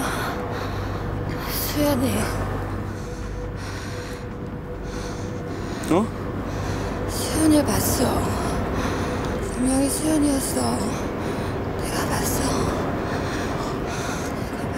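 A young woman breathes heavily and whimpers close by.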